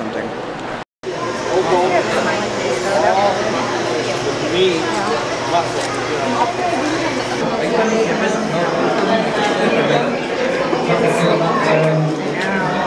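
A crowd of people chatter in an echoing room.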